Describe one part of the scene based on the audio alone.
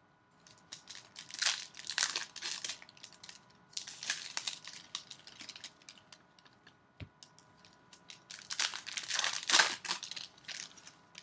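Foil wrapping crinkles and tears.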